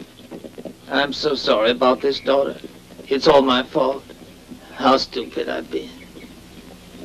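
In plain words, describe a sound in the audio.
An elderly man speaks apologetically, close by.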